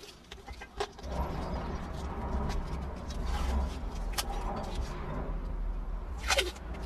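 Tape rips off a roll.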